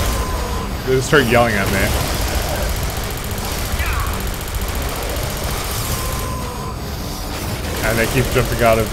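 A monster roars and snarls nearby.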